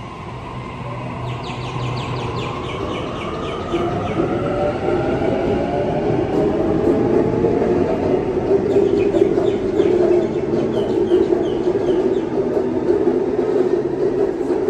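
An electric train pulls away with a rising whine and a growing rumble.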